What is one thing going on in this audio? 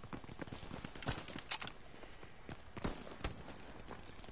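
Gunshots crack sharply in quick bursts.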